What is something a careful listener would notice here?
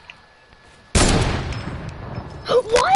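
A sniper rifle fires a single loud shot that echoes away.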